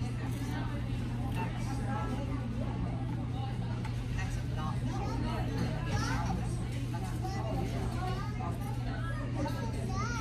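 People chatter in the background.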